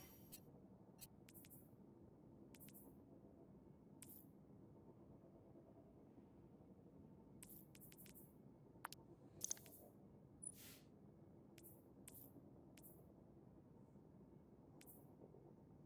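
Soft game menu clicks tick now and then.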